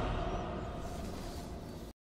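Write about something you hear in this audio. A swarm of bats flutters past.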